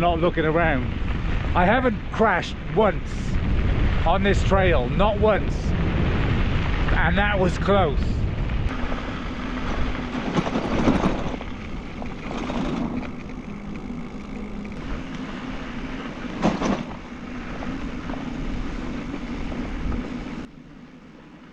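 Bicycle tyres crunch on a gravel road.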